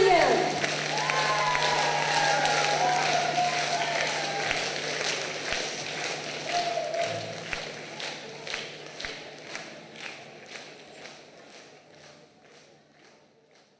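A large audience applauds in an echoing hall, the clapping slowly fading.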